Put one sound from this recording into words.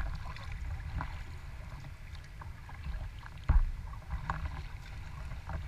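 Water splashes softly from a paddle stroke.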